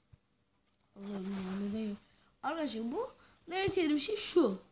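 A young boy speaks close to a microphone with animation.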